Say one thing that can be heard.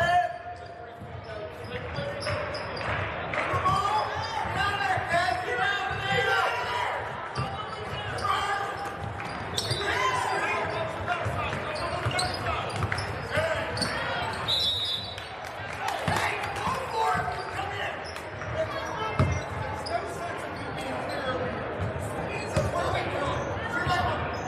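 Young girls call out to each other across a large echoing gym.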